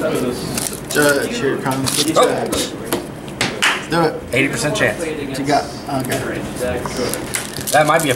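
Playing cards slap and slide against each other.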